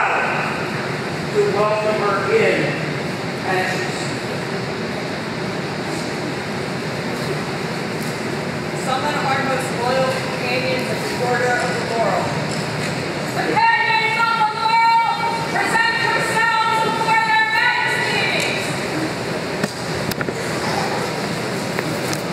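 A crowd murmurs softly.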